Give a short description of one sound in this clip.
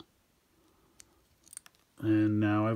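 Small plastic toy parts click softly as they are handled.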